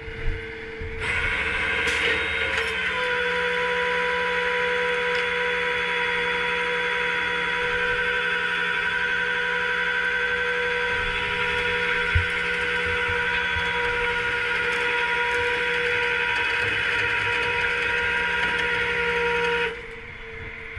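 A tow truck's winch motor whines steadily.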